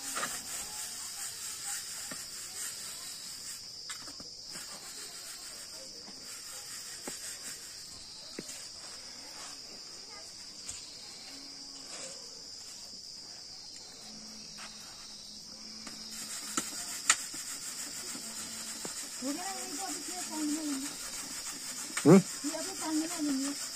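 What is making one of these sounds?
Finger millet grain rustles in a metal pan.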